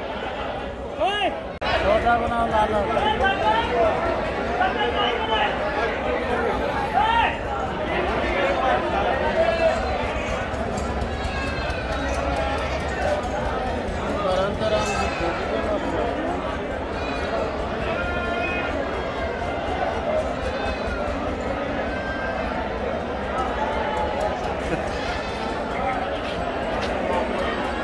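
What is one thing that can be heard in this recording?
A crowd of men and women chatters nearby on all sides.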